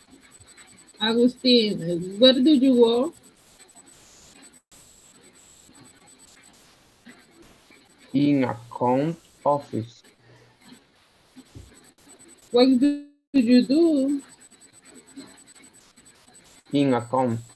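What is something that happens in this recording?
A woman speaks close by, with animation.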